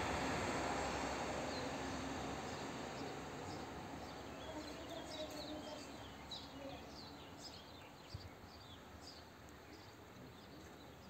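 A train rumbles away along the tracks and fades into the distance.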